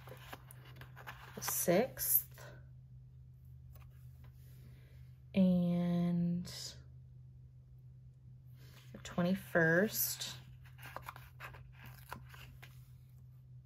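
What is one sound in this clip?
A sticker peels off a backing sheet with a soft crackle.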